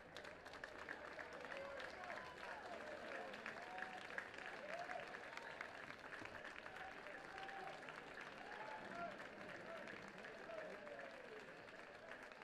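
Players clap their hands steadily.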